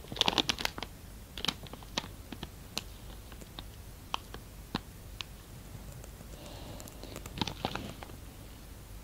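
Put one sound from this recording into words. A snack bag crinkles and rustles close by.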